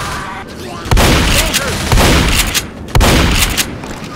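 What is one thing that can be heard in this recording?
A shotgun fires in loud, sharp blasts.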